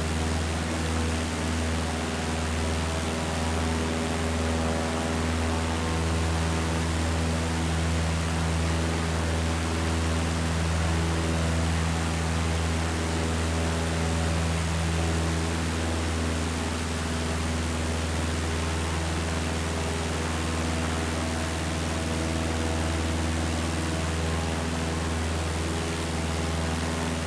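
A small propeller plane's engine drones steadily.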